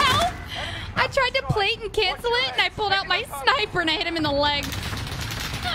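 A young woman laughs loudly into a close microphone.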